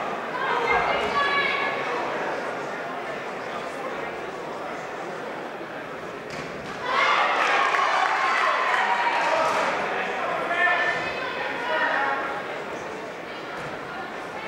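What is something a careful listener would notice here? A crowd of spectators cheers and shouts loudly in a large echoing hall.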